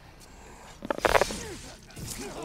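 A heavy blade swings and strikes with a loud crash.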